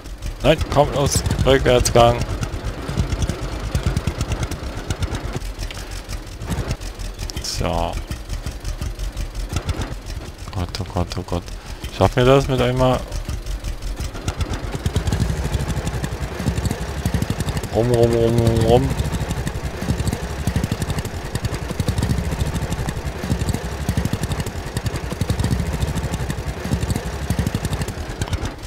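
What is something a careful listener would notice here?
A tractor engine chugs steadily and grows louder.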